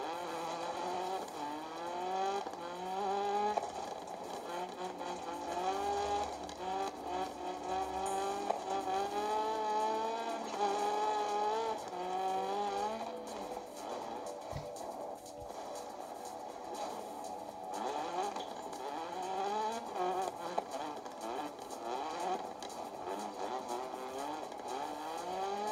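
A rally car engine revs hard, its pitch rising and falling with each gear change.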